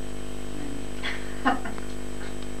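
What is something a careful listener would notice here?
A middle-aged woman laughs softly nearby.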